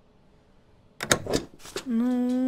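A rubber stamp thumps down on paper.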